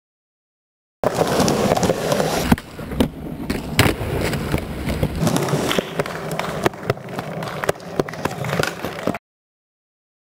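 A skateboard rolls over concrete.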